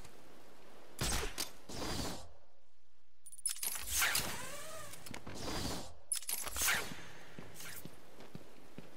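A cape flaps in gusts of rushing air.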